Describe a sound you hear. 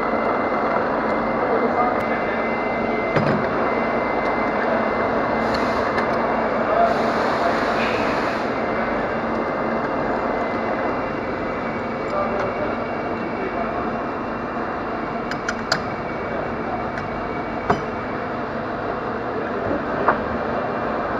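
A lathe motor hums steadily.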